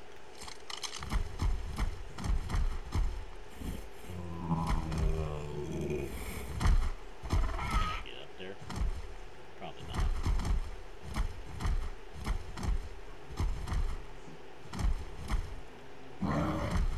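Heavy footsteps thud on rock as a large animal climbs.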